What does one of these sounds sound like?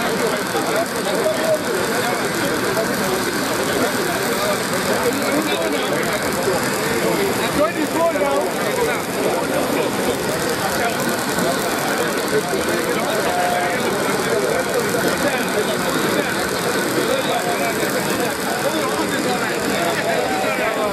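A large crowd outdoors chatters and cheers loudly.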